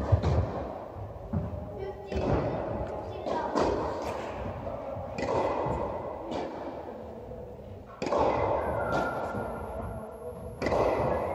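Tennis balls are struck with rackets and bounce in a large echoing hall.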